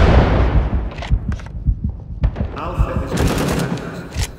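A shotgun's pump action clacks sharply.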